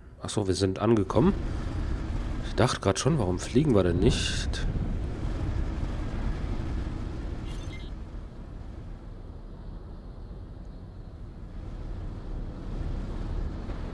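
A spacecraft engine rumbles low and steady.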